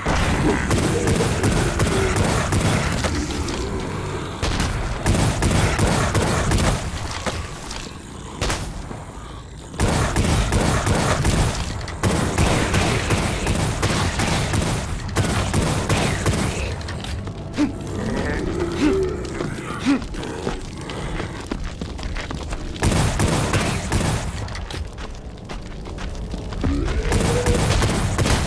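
A shotgun fires in loud, repeated blasts that echo through stone halls.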